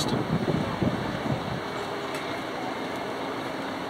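Footsteps clank on a metal walkway outdoors.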